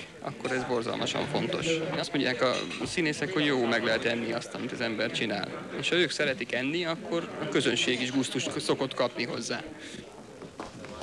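A man speaks with animation into a microphone, close up.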